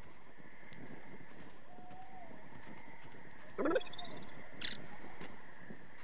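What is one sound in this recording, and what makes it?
Small creatures chirp and squeak nearby.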